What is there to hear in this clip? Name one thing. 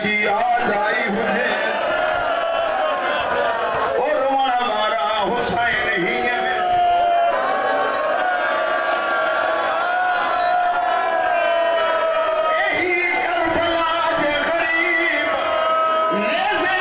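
A crowd of men beat their chests in rhythm.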